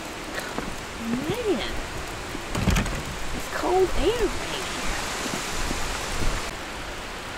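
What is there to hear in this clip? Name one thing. A woman talks with animation, close by.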